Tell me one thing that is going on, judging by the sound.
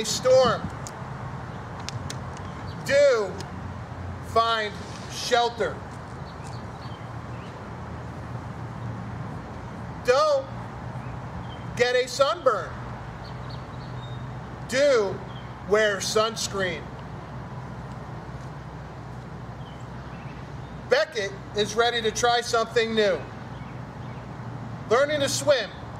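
A man reads aloud calmly and clearly, close by.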